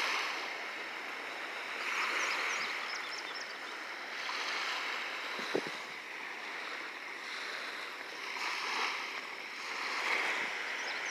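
Small waves lap gently on a shore, outdoors.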